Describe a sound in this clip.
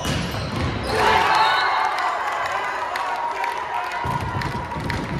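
Spectators cheer loudly after a point.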